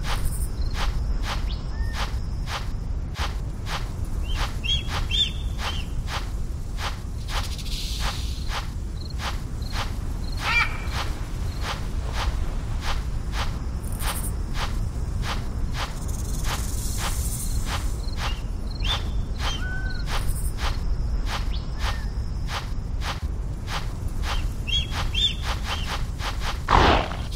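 A big cat's paws pad quickly and steadily over the ground.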